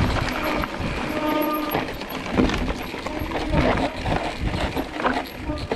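Mountain bike tyres crunch and rattle over a dirt trail.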